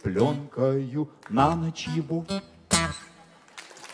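An elderly man sings into a microphone.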